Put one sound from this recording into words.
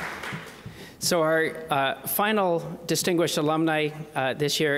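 A man speaks calmly over a microphone in a large hall.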